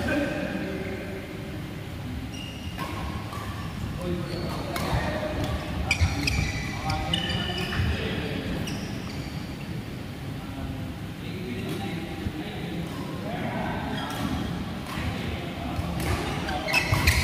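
Sports shoes squeak on the court floor.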